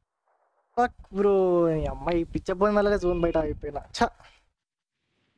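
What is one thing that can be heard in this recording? A young man speaks with animation into a microphone up close.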